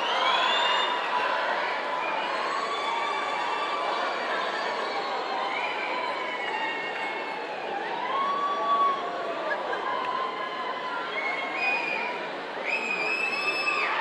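Young people in a crowd shout and whoop.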